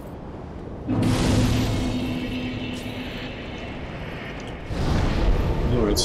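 A fire ignites with a loud whooshing roar.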